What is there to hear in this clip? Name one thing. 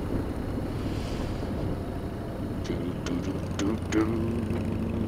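A motorcycle engine rumbles steadily at speed.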